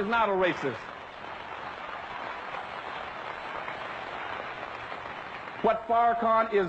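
A large crowd applauds.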